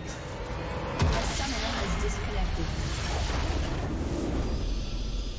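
A structure explodes with a loud magical blast.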